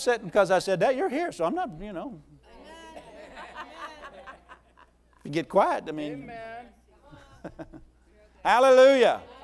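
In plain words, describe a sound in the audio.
A man speaks animatedly through a microphone in a large room, pausing now and then.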